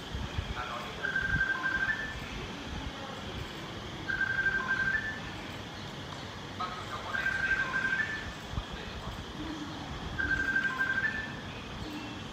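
A phone plays a short electronic tune that repeats every few seconds.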